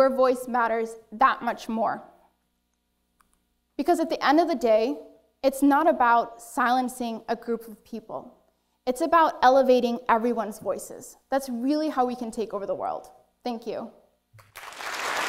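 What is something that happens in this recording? A woman speaks clearly through a microphone in a large hall.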